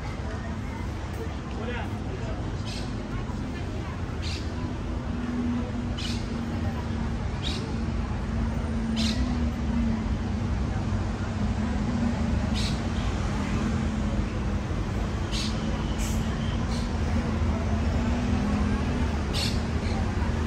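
Traffic hums steadily in the distance outdoors.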